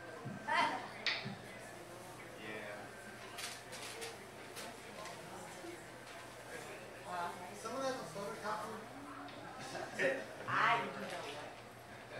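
A man talks into a microphone, heard through loudspeakers in an echoing room.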